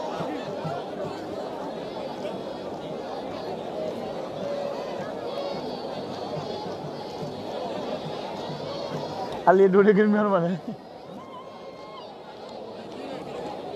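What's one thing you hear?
A large outdoor crowd chatters and murmurs in the distance.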